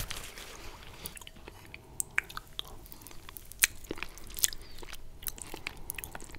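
A man slurps and chews spaghetti close to a microphone.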